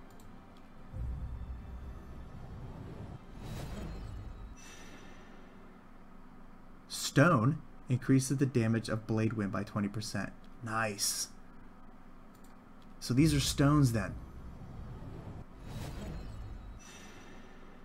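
A deep magical whoosh swells as a card bursts into light.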